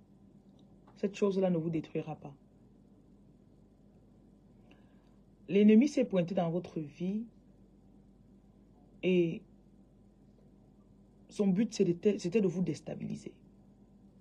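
A woman speaks slowly and softly, close to the microphone, with pauses between phrases.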